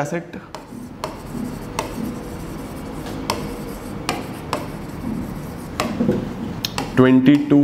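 A marker squeaks and scratches on a board.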